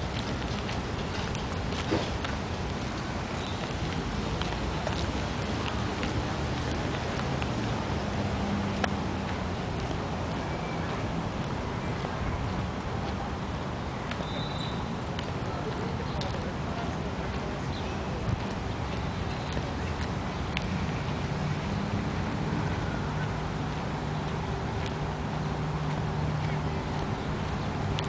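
Traffic hums steadily in the distance.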